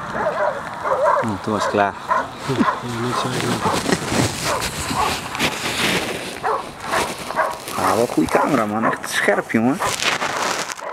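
A man talks outdoors at a distance.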